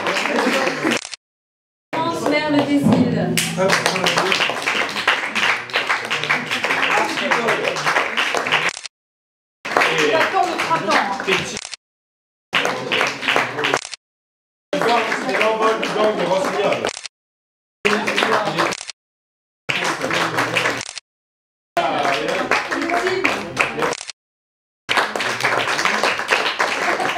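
A small crowd claps and applauds in a lively room.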